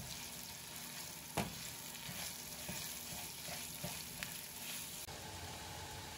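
A wooden spatula scrapes against a pan.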